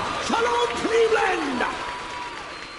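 A man sings loudly into a microphone, his voice sliding up and down.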